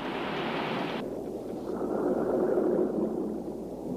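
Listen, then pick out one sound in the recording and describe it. Bubbles rush and roar underwater, muffled.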